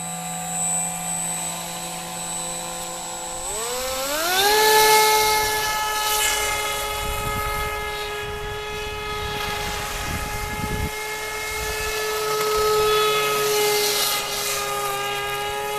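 A small model boat's motor whines at a steady idle, then revs up sharply to a high buzzing drone.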